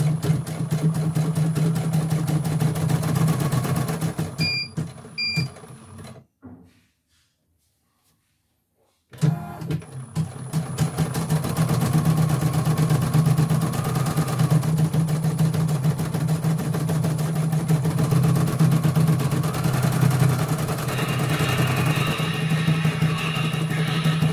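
An embroidery machine stitches with a rapid, steady mechanical rattle.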